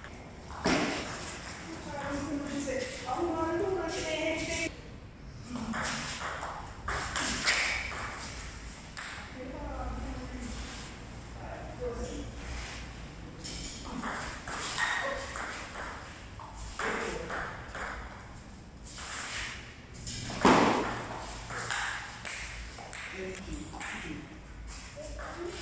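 A table tennis ball clicks back and forth between paddles and the table, echoing in a large room.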